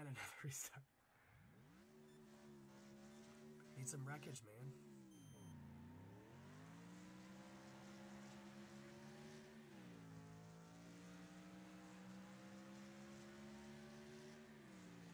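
A race car engine idles, then revs hard and roars up through the gears.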